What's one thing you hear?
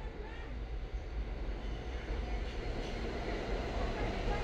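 A train rumbles into the station, growing louder.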